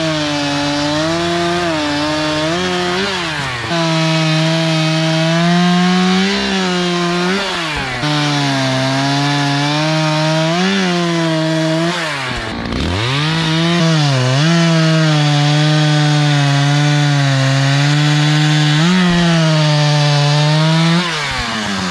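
A chainsaw engine roars and revs up and down while cutting through wood.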